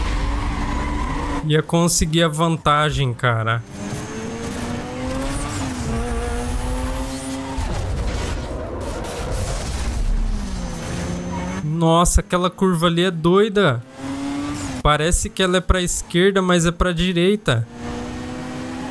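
A racing car engine roars and revs as it speeds up and shifts gears.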